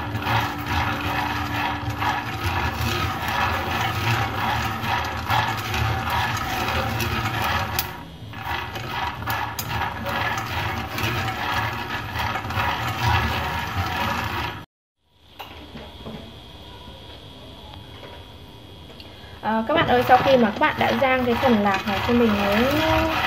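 Peanuts rattle and scrape as chopsticks stir them in a dry pan.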